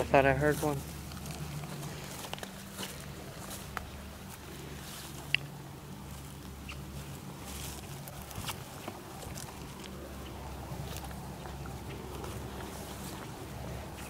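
Footsteps rustle through grass and leaves.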